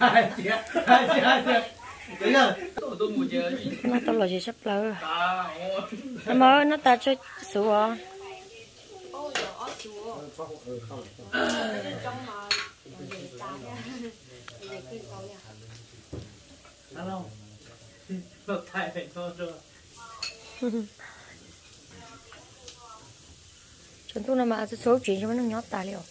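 Chopsticks and bowls clink now and then.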